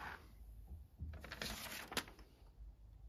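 A sheet of paper rustles as it is pulled out.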